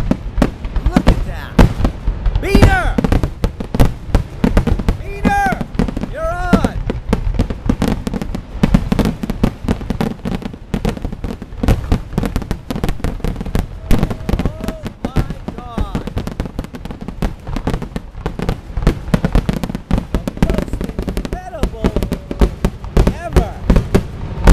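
Fireworks crackle and sizzle overhead.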